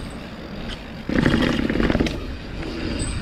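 Bicycle tyres clatter down stone steps.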